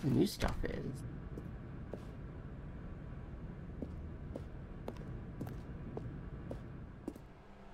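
Footsteps tread slowly on a hard floor.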